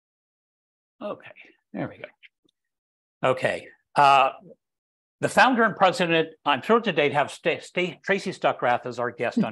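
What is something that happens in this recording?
An older man speaks calmly through an online call microphone.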